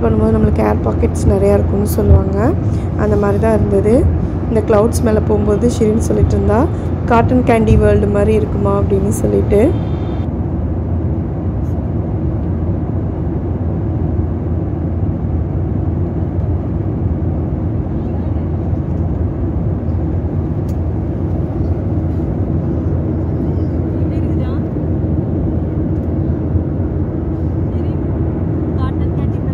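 Jet engines roar with a steady, low drone inside an airplane cabin.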